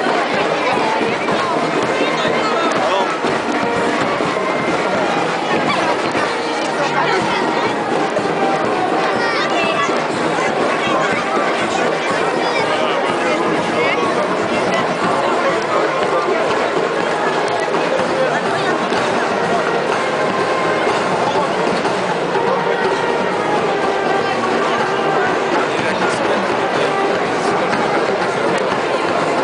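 A large outdoor crowd chatters and murmurs all around.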